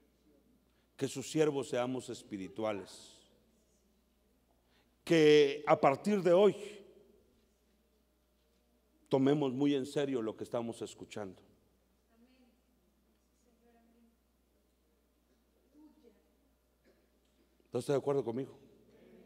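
A middle-aged man speaks with emphasis into a microphone, in bursts with pauses.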